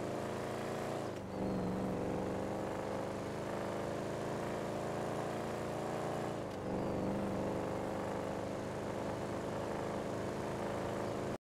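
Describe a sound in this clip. A car engine roars steadily, dropping in pitch as it shifts gear twice.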